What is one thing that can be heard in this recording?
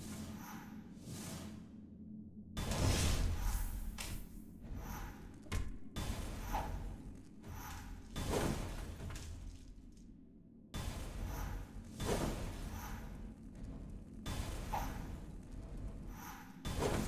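Sword slashes and hits ring out in quick bursts.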